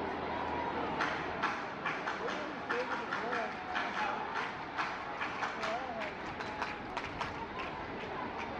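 A stadium crowd claps in rhythm.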